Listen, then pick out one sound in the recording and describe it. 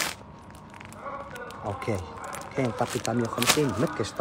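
Plastic wrapping crinkles as a hand handles it.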